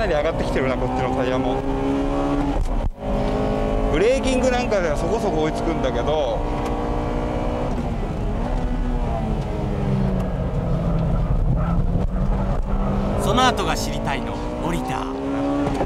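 A car engine revs hard and roars steadily from inside the car, rising and falling with gear changes.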